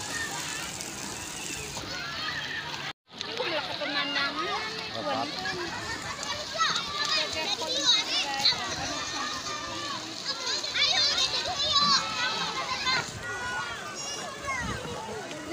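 Water splashes as children move through a pool.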